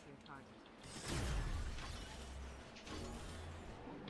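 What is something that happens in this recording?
A fiery spell bursts and roars.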